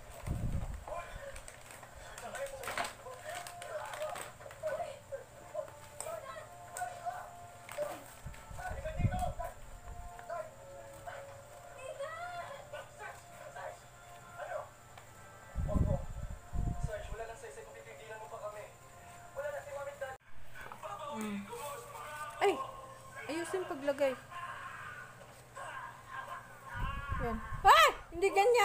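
A young child talks nearby.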